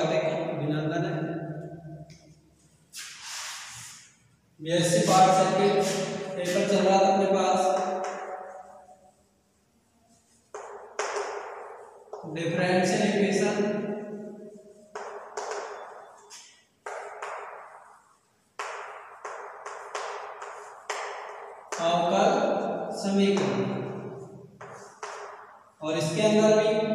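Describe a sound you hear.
A young man speaks calmly and clearly, as if teaching, close by.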